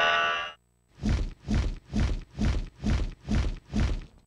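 A boss's health bar fills with rapid rising beeps.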